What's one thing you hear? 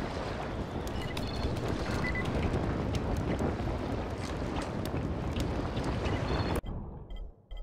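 A fire crackles and roars in a barrel.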